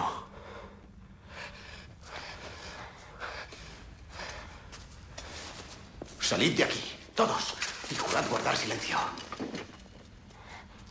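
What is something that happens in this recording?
A young man gasps and speaks urgently.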